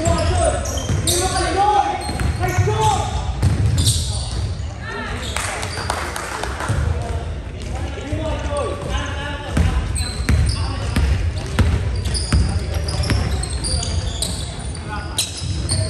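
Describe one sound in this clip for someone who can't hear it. Young men shout and call out to each other across the court.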